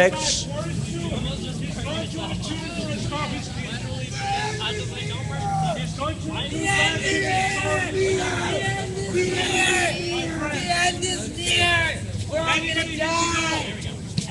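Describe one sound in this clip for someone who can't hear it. A crowd of people murmurs in the background.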